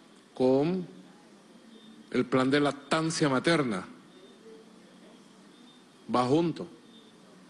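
A middle-aged man speaks into a microphone in short, animated bursts with pauses.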